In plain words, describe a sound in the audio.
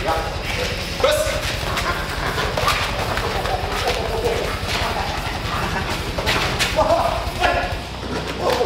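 A dog barks loudly.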